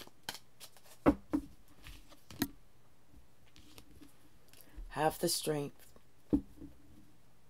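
Cards tap and shuffle in hands.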